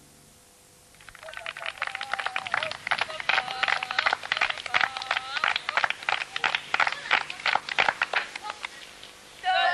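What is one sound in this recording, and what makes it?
A group of girls clap their hands in a quick rhythm.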